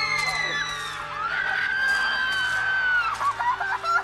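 A young man cries out in pain.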